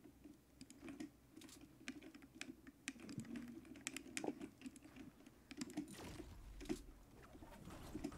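Wooden building pieces snap into place with quick knocks in a game.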